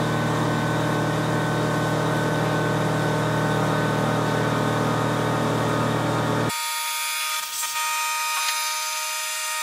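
Liquid coolant sprays and splashes.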